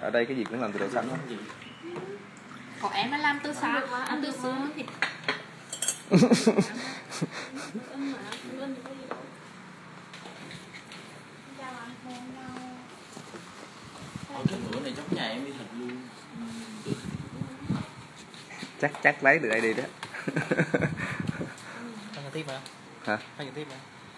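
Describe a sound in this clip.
A man and a woman talk casually nearby.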